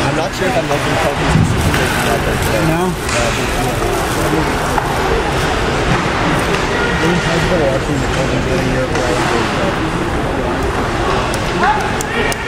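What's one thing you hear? Skates scrape and glide across ice in a large echoing rink.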